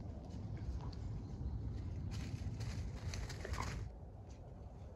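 A dog rustles through dry leaves on the ground.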